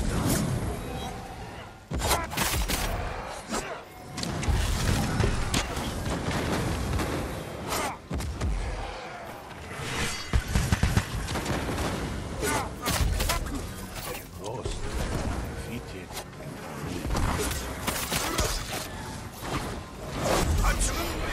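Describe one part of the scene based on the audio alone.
Swords clash and slash repeatedly in a fierce fight.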